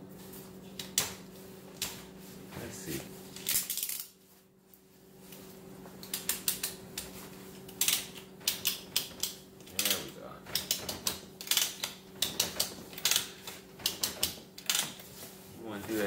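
Plastic buckles click and rattle as straps are fastened.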